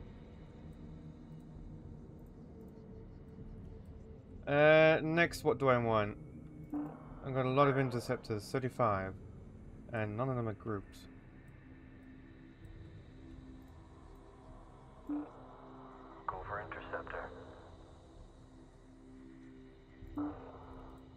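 A deep engine drone hums steadily.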